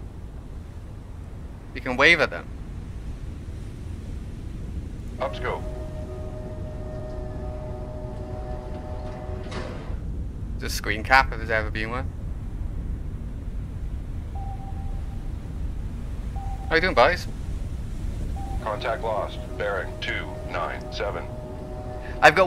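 Waves wash and rumble steadily against a submarine's hull at sea.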